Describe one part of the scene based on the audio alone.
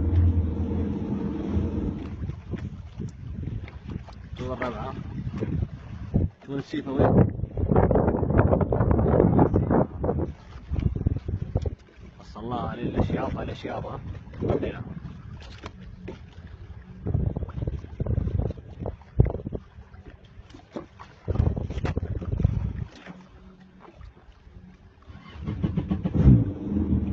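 Wind rushes and buffets outdoors on open water.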